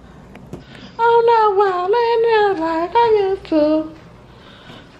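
A young woman sings loudly close to the microphone.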